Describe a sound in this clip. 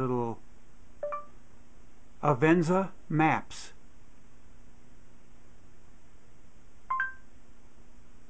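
A phone gives short electronic beeps.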